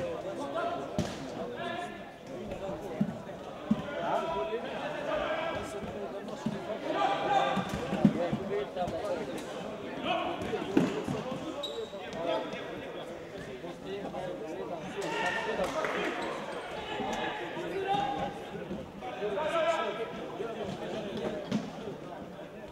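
A ball is kicked with sharp thuds that echo around a large hall.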